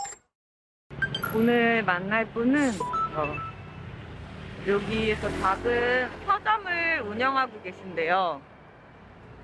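A woman speaks close to the microphone with animation.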